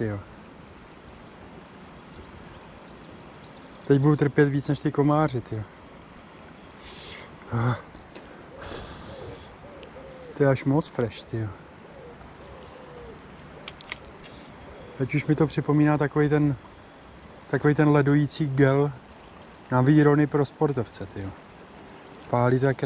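A river flows gently over stones.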